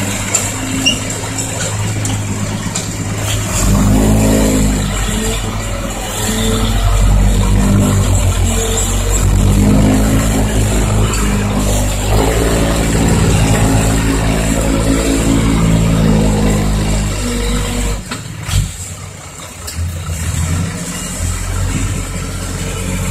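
A heavy diesel truck engine rumbles and revs as the truck drives slowly over rough ground.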